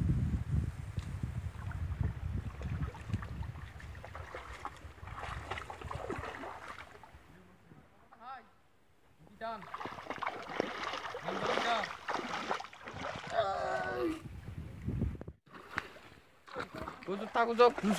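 Water splashes as feet wade through a shallow stream.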